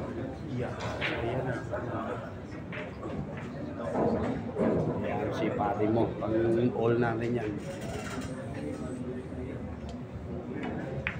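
A crowd of young men chatters and talks nearby.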